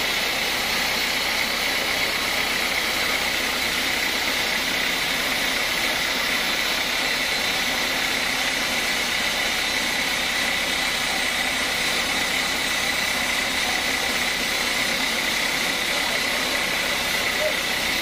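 A sawmill band saw whines steadily as it cuts through a large log.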